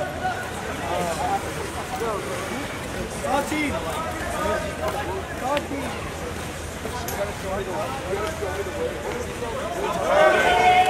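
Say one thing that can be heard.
Water splashes as swimmers kick and thrash.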